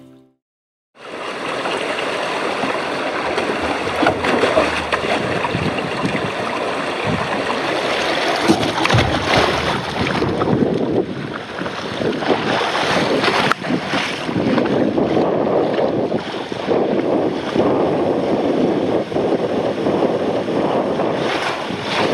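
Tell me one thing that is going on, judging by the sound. Water rushes and splashes down a slide close by.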